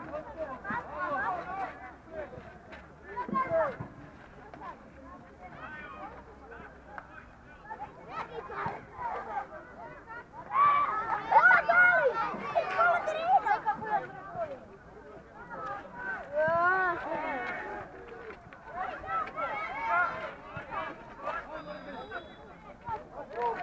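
Young players shout and call to each other from a distance outdoors.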